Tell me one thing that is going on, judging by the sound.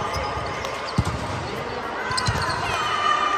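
A volleyball is hit with sharp thuds in a large echoing hall.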